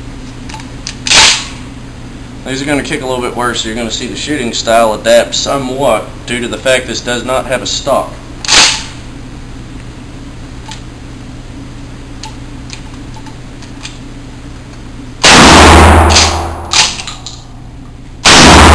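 Gunshots boom loudly and echo around an enclosed room.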